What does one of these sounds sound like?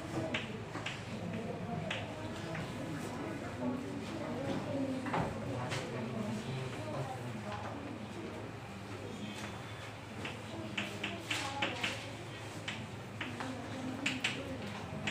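A woman speaks calmly and steadily, as if teaching.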